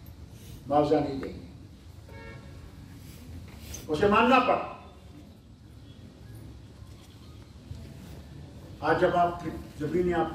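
An elderly man speaks forcefully into a microphone over a loudspeaker, with long pauses.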